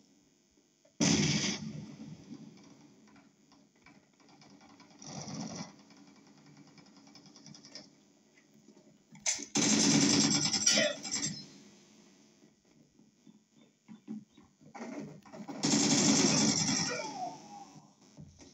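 Rifle gunfire rattles in short bursts.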